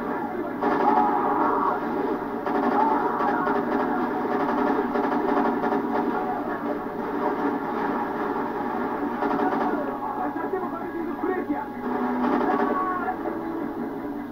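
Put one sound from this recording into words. Game gunfire bursts through a loudspeaker in a room.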